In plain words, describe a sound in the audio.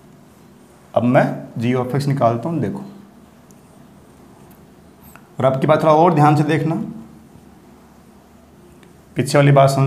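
A man speaks clearly and steadily close by, in short bursts with pauses.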